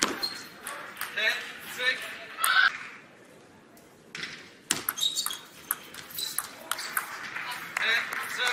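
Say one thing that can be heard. A table tennis ball clicks sharply back and forth off paddles and the table in a quick rally.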